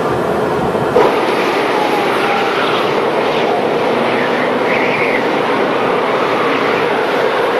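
Wind howls outdoors in a snowstorm.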